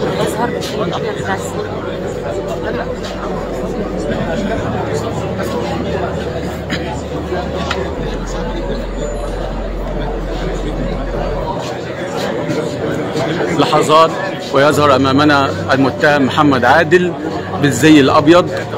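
A crowd of people murmurs and talks in the background.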